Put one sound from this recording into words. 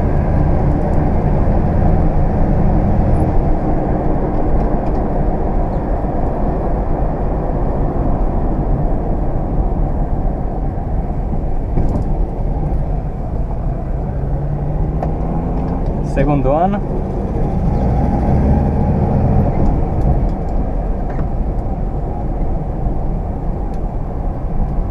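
Wind and road noise rush past an open car window.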